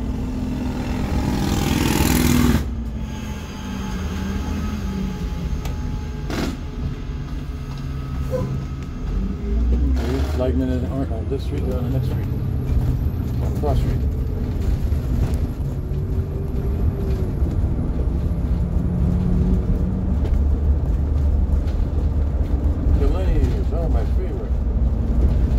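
A large vehicle's engine rumbles steadily from inside the cab.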